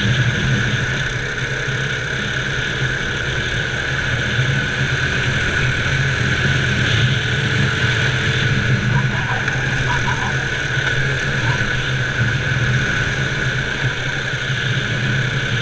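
A go-kart engine drones loudly and steadily up close.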